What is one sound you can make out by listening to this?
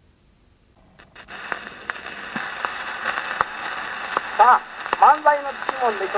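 A gramophone needle hisses and crackles on a spinning record.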